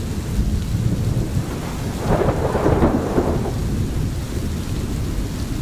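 A stream gurgles and flows over stones.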